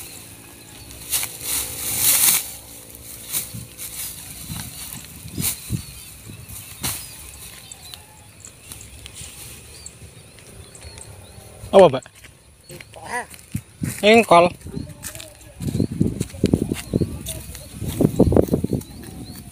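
Dry rice stalks rustle and crackle as they are handled.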